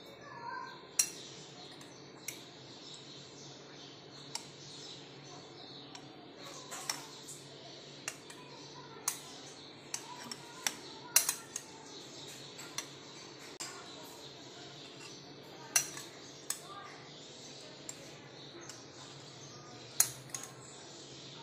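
A metal spoon clinks against glass and a bowl.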